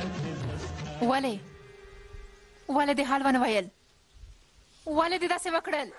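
A young woman speaks tensely and sharply, close by.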